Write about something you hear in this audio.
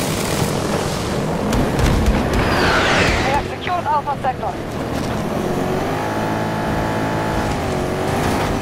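A vehicle engine rumbles as it drives over rough ground.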